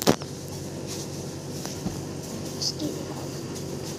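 Cloth rustles softly as a scarf is wrapped around a head.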